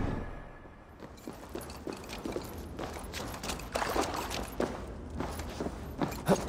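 Footsteps thud across a wooden floor.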